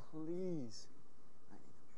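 A young man shouts briefly close by.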